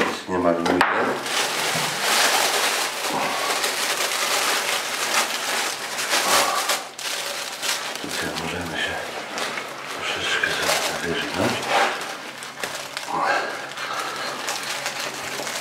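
Plastic film crinkles and rustles.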